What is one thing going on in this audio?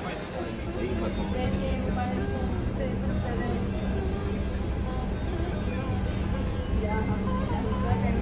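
An escalator hums steadily.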